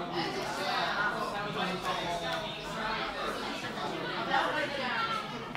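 Cards are laid down and shuffled softly on a playing mat.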